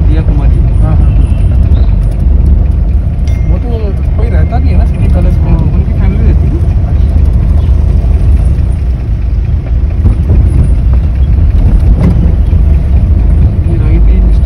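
A car engine rumbles steadily from inside the car.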